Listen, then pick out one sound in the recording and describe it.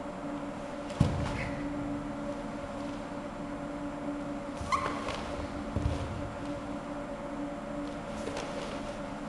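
A stiff cotton uniform snaps sharply with quick punches.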